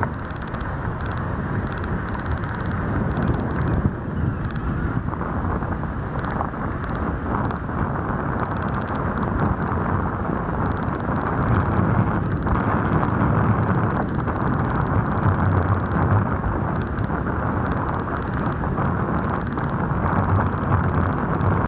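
Wind blusters steadily across open ground outdoors.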